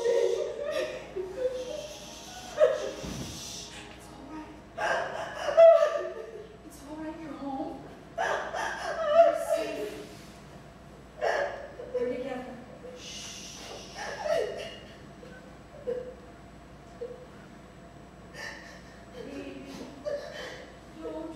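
A woman sobs and cries out in an echoing room.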